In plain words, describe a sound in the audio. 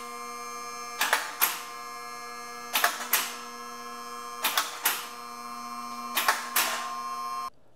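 A car lift's motor hums steadily.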